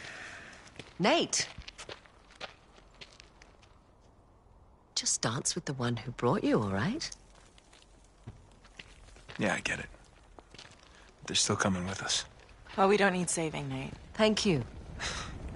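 A young man answers calmly up close.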